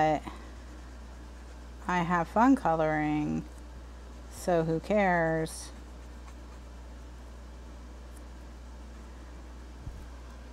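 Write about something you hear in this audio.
A marker scratches softly across paper.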